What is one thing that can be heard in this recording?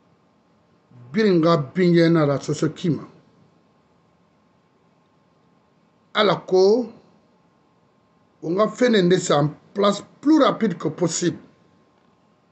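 A middle-aged man speaks with animation, close to the microphone, in short bursts with pauses.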